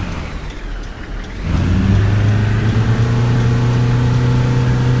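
A bus engine hums and grows louder as the bus pulls away.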